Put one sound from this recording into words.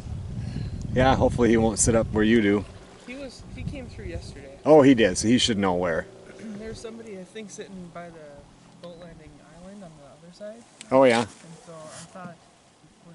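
A man talks calmly across open water.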